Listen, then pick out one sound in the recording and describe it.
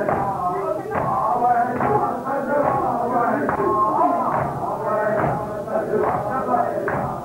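Hands beat on chests in a steady rhythm.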